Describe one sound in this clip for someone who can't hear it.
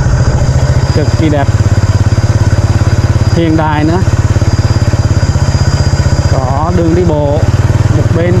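A motorbike engine putters steadily up close.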